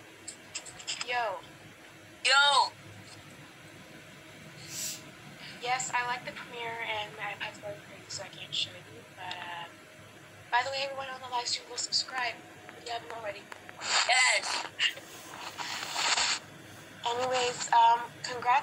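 A boy talks with animation close to a phone microphone.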